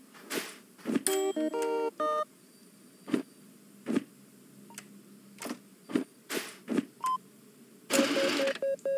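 A machine beeps in short, quick tones.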